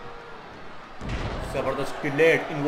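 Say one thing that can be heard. A body slams down onto a wrestling ring mat with a heavy thud.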